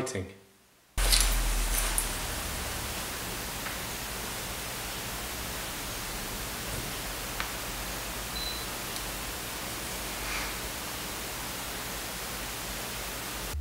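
A small lathe motor hums steadily.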